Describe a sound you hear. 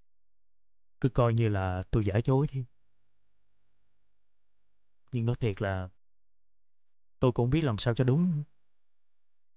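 A young man speaks tensely on the phone.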